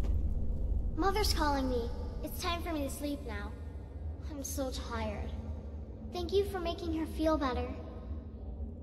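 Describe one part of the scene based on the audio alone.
A girl's ghostly voice speaks softly with an echo.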